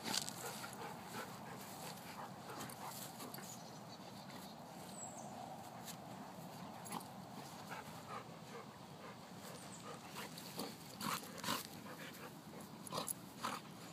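Dogs scuffle and tussle on grass.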